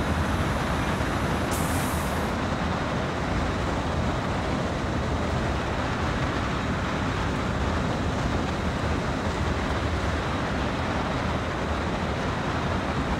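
Train wheels roll and clatter over the rails.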